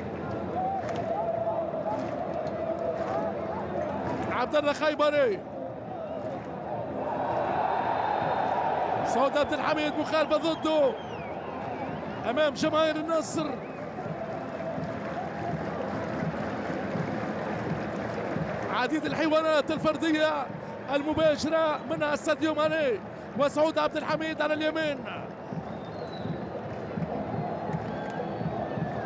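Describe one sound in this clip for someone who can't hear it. A large stadium crowd roars and chants in the open air.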